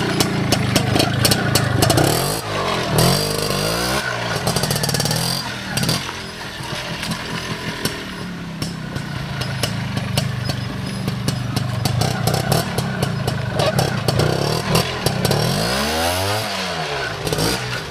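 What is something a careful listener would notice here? A motorcycle engine putters and revs over rough ground.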